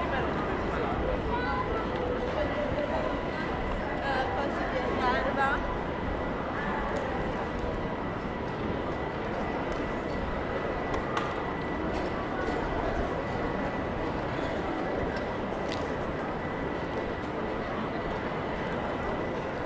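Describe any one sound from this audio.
Outdoors, a street crowd murmurs with distant chatter.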